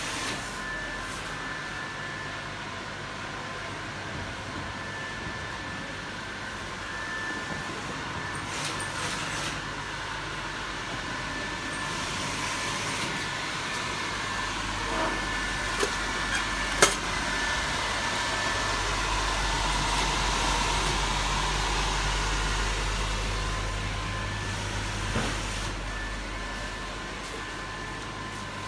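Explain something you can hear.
An electric blower fan hums steadily, growing louder up close.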